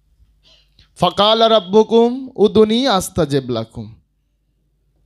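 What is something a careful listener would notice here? A young man chants melodically into a microphone, heard through a loudspeaker.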